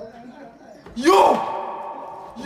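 A young man shouts loudly.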